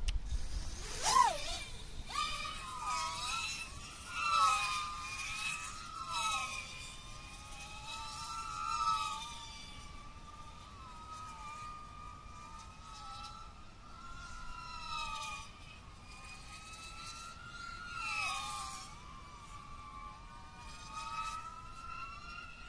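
A small drone's motors whine loudly, rising and falling in pitch as it flies.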